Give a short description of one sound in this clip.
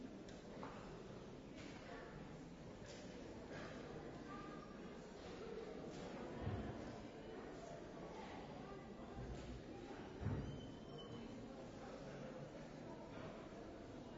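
A crowd of adults chatters in a large echoing hall.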